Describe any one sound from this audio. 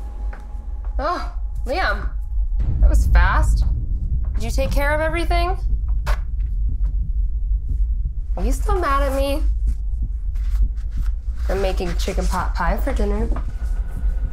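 A young woman speaks quietly and tensely nearby.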